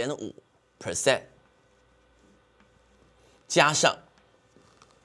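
A man speaks calmly and clearly into a close microphone, in short phrases.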